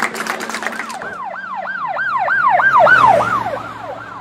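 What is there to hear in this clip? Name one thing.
A police siren wails in rising and falling bursts.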